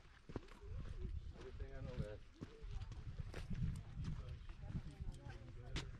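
Footsteps crunch on rock nearby.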